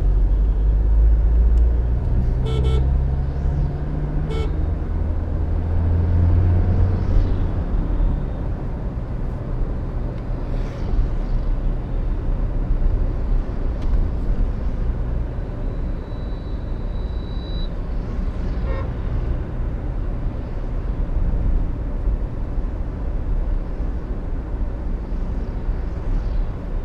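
A vehicle's engine rumbles steadily from inside as it drives along a road.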